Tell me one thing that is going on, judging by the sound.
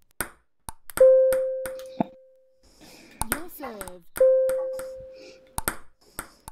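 A bright electronic chime rings out and slowly fades.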